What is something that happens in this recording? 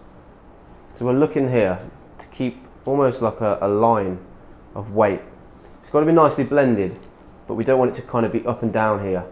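A man talks calmly and clearly, close by.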